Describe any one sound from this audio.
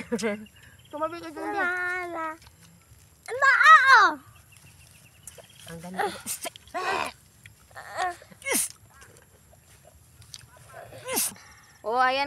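Women talk and laugh with animation close by, outdoors.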